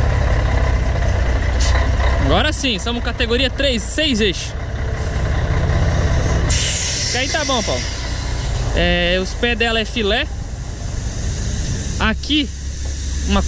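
A truck engine idles nearby with a low, steady rumble.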